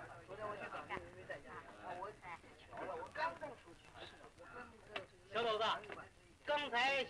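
A crowd of men talk and call out over one another nearby.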